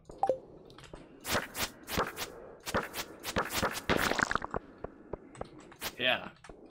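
A weapon swings and strikes a creature.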